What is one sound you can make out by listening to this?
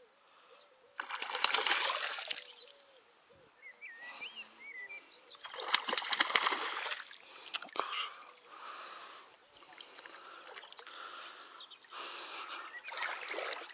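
A fish splashes and thrashes at the surface of the water.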